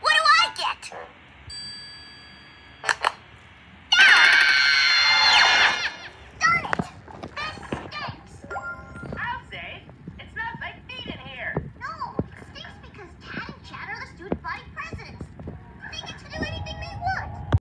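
A boy speaks crossly through a television speaker.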